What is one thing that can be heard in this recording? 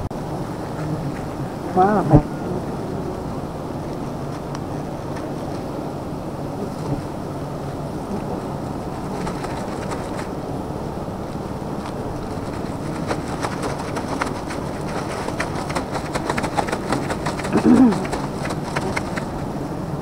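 Bees buzz steadily close by.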